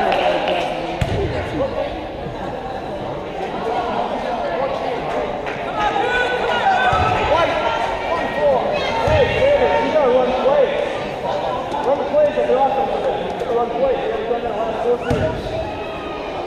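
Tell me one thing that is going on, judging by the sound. A basketball thumps on the wooden floor.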